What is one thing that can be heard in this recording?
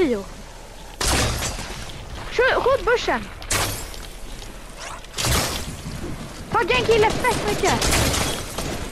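Loud shots and blasts bang in a video game battle.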